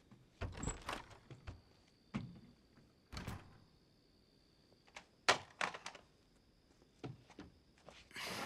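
Footsteps thud across a hard floor.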